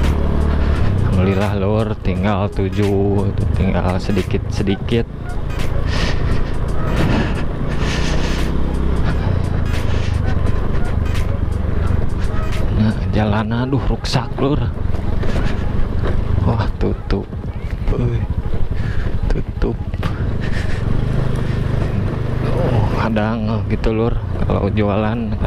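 A motorbike engine hums steadily as the bike rides along.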